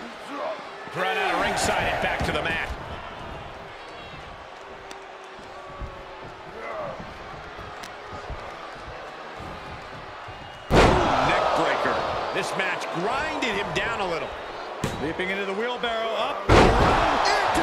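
Heavy thuds ring out as a wrestler slams onto the ring mat.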